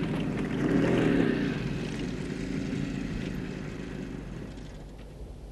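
A motorcycle engine rumbles as it drives off and fades away.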